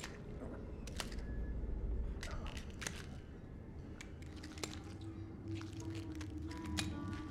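Rubber gloves squelch and smack in wet, sticky flesh.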